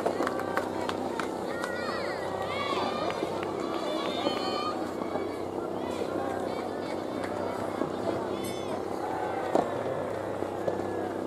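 Tennis rackets strike a ball with sharp pops, outdoors.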